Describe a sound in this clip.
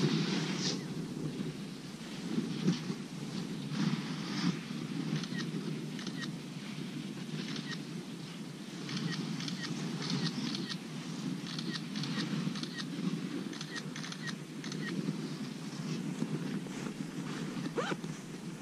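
Wind buffets a microphone outdoors, rumbling steadily.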